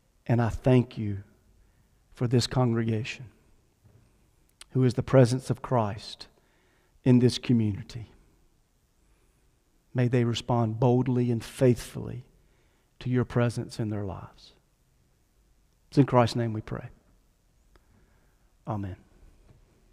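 A middle-aged man speaks calmly into a microphone in an echoing hall, with pauses between phrases.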